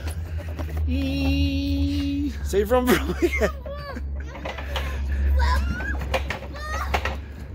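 A young boy talks and makes playful sounds close by.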